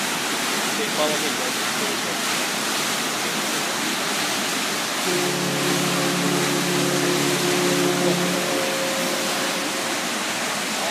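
Churning water rushes and foams loudly behind a moving boat.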